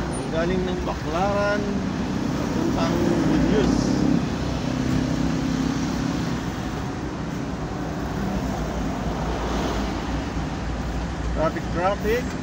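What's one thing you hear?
A motorcycle engine buzzes past close by.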